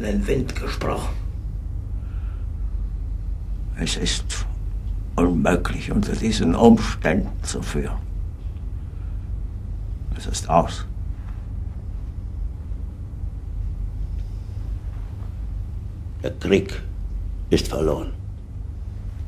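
A middle-aged man speaks in short, tense bursts.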